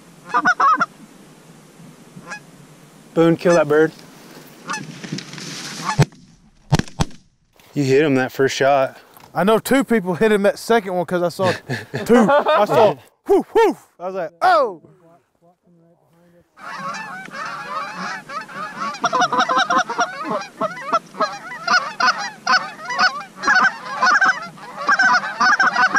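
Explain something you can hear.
Geese honk loudly in a flock outdoors.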